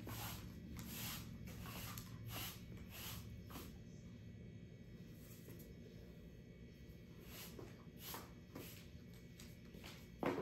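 A broom sweeps across a hard floor with soft brushing strokes.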